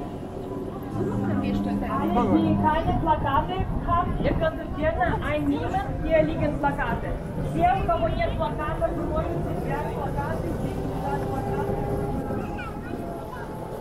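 Men, women and children chatter nearby outdoors.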